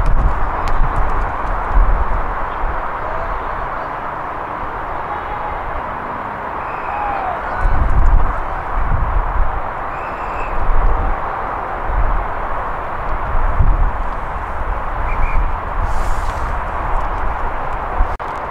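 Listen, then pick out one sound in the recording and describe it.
Wind blusters steadily across the microphone outdoors.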